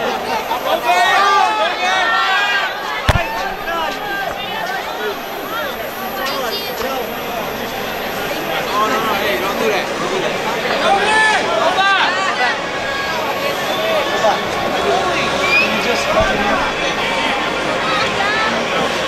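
A large crowd of fans chatters and calls out excitedly in a big echoing arena.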